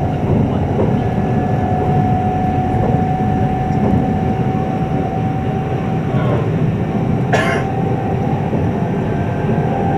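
Wheels of an electric express train rumble on the rails at speed, heard from inside a carriage.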